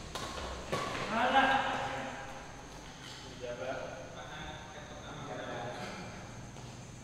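Men call out during a badminton rally.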